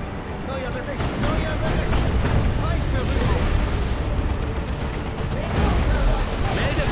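Rapid gunfire rattles in a battle.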